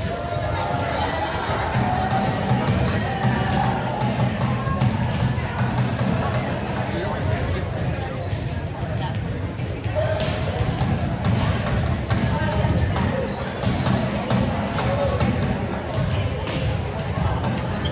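Players' sneakers squeak sharply on the hardwood floor.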